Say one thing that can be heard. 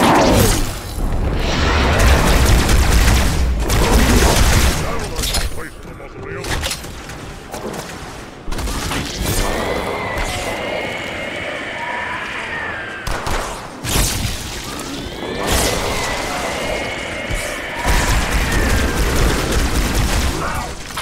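Plasma grenades explode with loud, deep booms.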